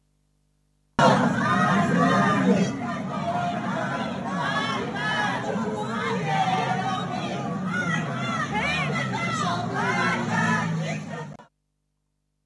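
A crowd chants and shouts loudly outdoors.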